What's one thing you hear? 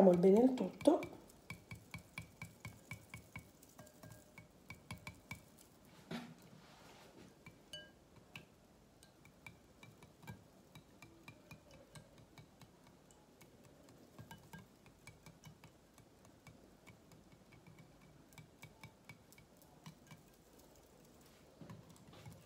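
A wire whisk clicks rapidly against the sides of a glass bowl.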